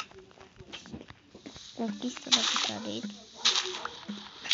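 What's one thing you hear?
Dirt crunches as blocks are dug out, one after another.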